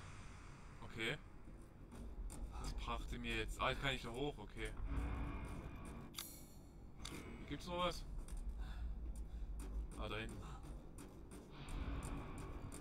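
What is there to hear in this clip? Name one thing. Footsteps clang on metal stairs and walkways.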